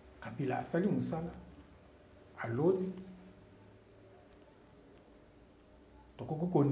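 A middle-aged man speaks calmly and with emphasis into a close microphone, pausing between phrases.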